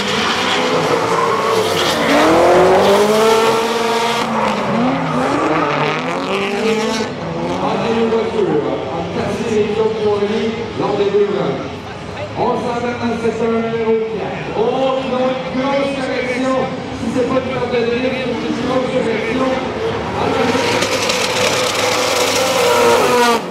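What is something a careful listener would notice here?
Car engines roar and rev up and down loudly.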